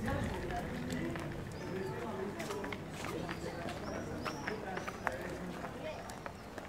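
Footsteps tap on paving.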